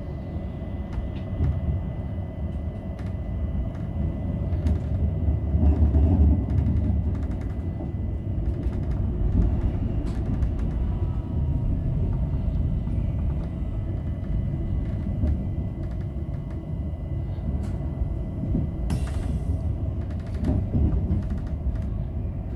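Train wheels click and clack over rail joints and switches.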